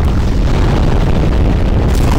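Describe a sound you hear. A fire roars loudly.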